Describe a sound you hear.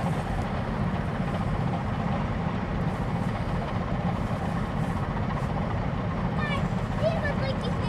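Water washes against a boat's hull.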